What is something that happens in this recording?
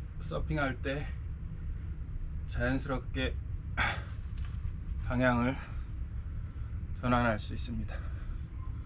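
A young man speaks calmly and close by, in short phrases with pauses.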